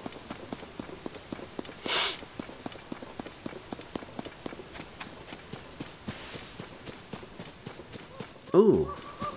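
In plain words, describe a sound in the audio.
Footsteps run quickly through grass.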